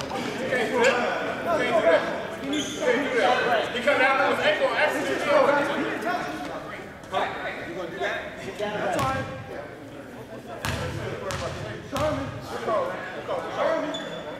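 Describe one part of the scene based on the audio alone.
A man shouts instructions loudly nearby in a large echoing gym.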